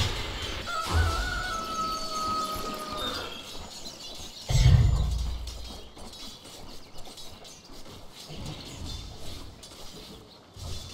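Game spell and combat sound effects ring out.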